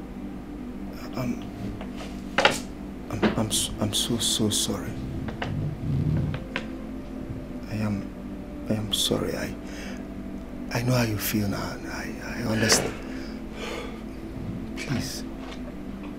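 A middle-aged man speaks calmly and firmly, close by.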